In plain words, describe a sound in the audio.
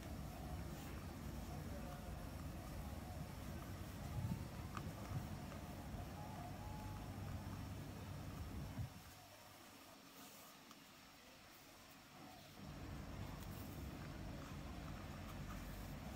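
A cord rustles softly as hands braid it against a hard surface.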